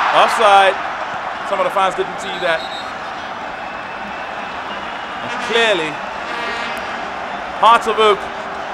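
A large stadium crowd murmurs steadily outdoors.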